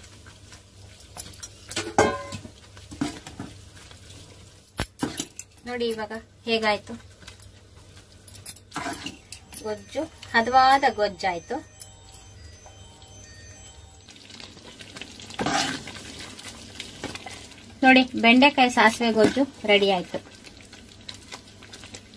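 A ladle stirs a thick sauce in a metal pan.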